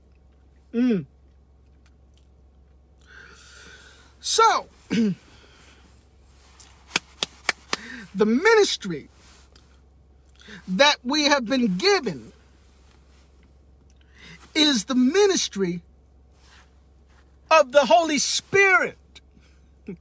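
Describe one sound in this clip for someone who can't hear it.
A man talks with animation close by, in short bursts.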